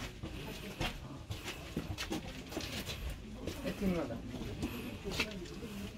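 Footsteps scuff and tap on stone steps.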